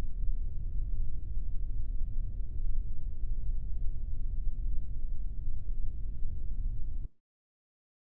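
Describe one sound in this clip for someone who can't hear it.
A jet engine rumbles steadily with a deep roar, then cuts off abruptly.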